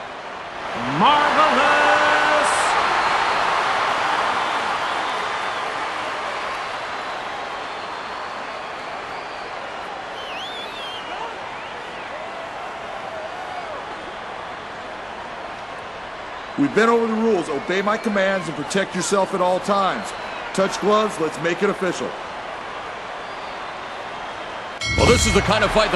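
A large crowd cheers and roars in a big echoing hall, then slowly fades.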